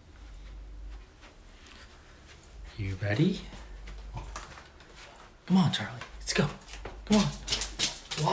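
A dog's paws patter down wooden stairs.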